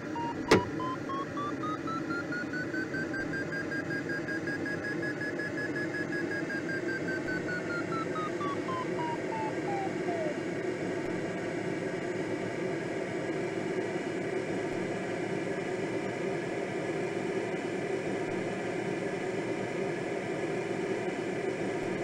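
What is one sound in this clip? Wind rushes steadily past a glider's cockpit.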